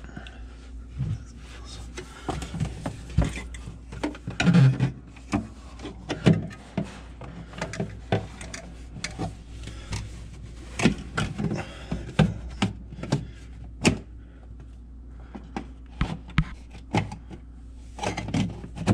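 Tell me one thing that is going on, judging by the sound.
Plastic parts knock and clatter as a cover is handled.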